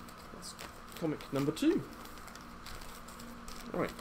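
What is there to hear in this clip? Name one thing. A paper sleeve crinkles and slides as it is handled.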